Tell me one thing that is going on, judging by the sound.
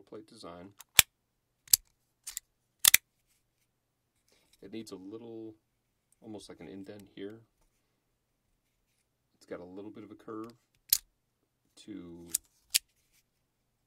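Small plastic pieces click and snap together.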